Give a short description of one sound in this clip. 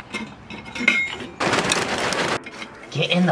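Charcoal briquettes pour and clatter into a grill.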